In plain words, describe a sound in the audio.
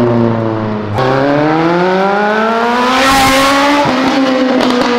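A motorcycle engine revs and roars by up close.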